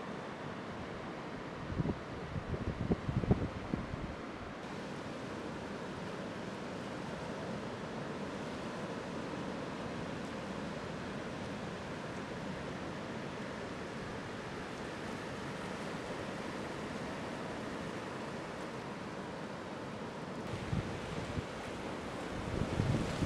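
Waves break and roll in steadily.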